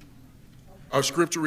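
A man speaks into a microphone, heard through a loudspeaker in a large room.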